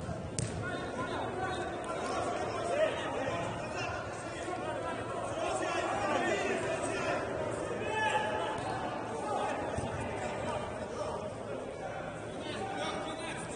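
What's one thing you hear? Men shout and call out to each other across an echoing indoor hall.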